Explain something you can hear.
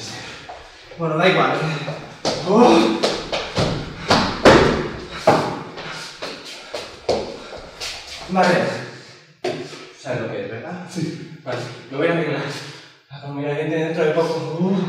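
A man speaks with animation in a room with a slight echo.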